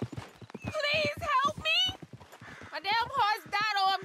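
Horse hooves clop on a dirt track.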